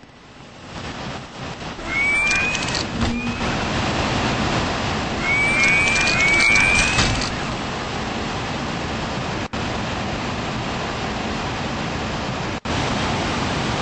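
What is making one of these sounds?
A jet thruster roars and hisses.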